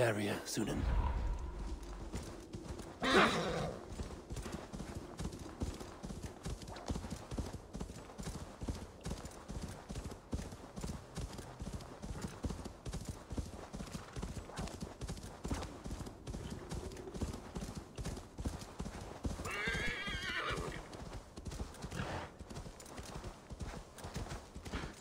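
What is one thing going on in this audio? Horse hooves pound quickly through snow.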